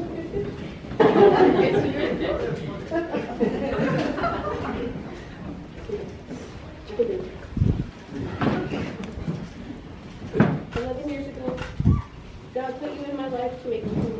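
A young woman reads out words, heard from a few metres away.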